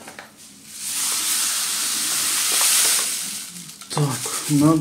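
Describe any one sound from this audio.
Sugar pours from a paper bag into a bowl with a steady hiss.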